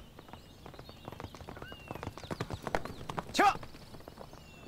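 A horse's hooves pound the ground at a gallop.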